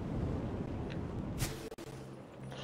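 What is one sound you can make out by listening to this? A fiery blast bursts with a whoosh.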